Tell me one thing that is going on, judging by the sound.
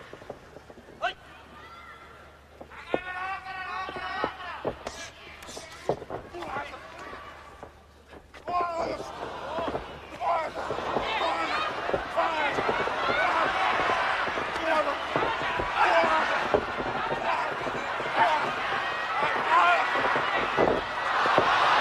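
Wrestlers' bodies thud and slap against each other.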